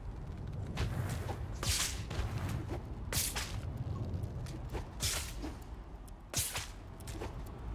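Air rushes past in bursts as a character swings along on a line.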